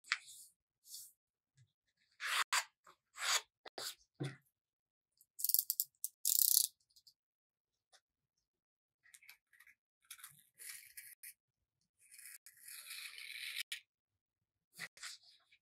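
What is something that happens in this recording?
Paper rustles and creases as it is folded by hand.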